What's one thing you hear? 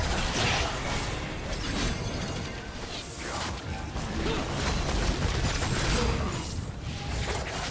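Video game spell effects crackle and whoosh during a fight.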